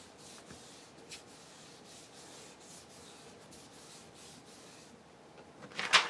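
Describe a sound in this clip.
A hand smooths a sheet of paper with soft brushing strokes.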